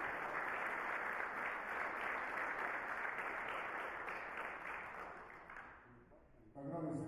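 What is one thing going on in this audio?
A crowd applauds in a large hall.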